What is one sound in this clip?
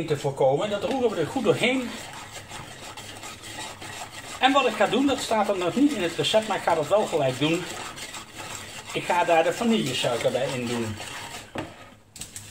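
A hand whisk beats egg mixture in a ceramic bowl.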